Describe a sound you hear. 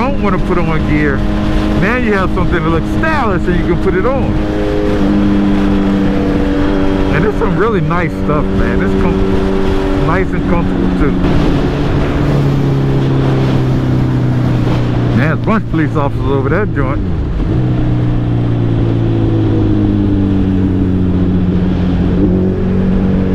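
An inline-four sportbike engine hums while cruising on a highway.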